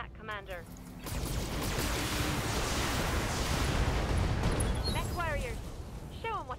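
Energy weapons fire in a long, loud rushing burst.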